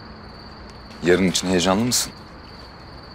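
A young man asks a question in a calm, friendly voice.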